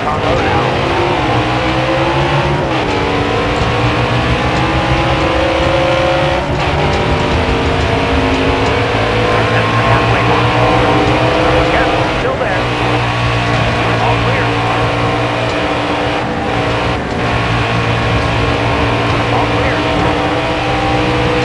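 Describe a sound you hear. Other race cars roar past close by.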